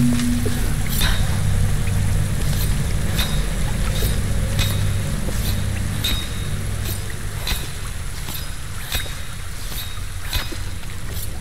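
Climbing axes strike into rock with sharp, evenly spaced clicks.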